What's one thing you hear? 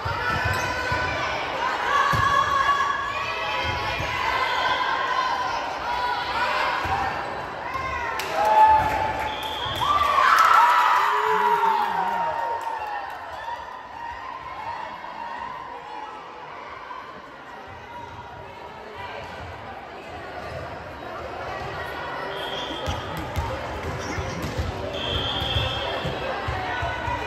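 Young girls call out to each other on a volleyball court.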